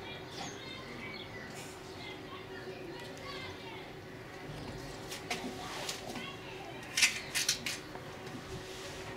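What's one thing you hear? A polar bear cub hums and suckles while nursing.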